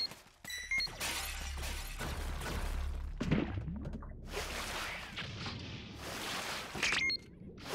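Water rushes and bubbles as a swimmer moves underwater.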